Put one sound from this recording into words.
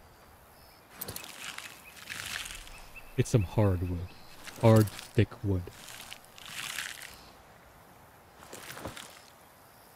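An axe chops into a tree trunk.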